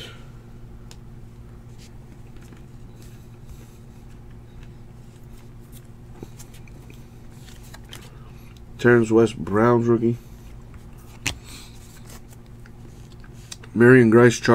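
Trading cards rustle and click softly as they are handled.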